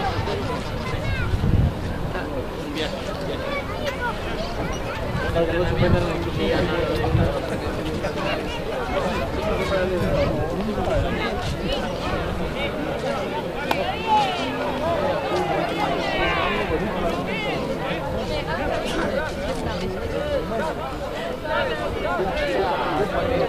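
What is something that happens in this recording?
A crowd of spectators chatters and calls out in the distance.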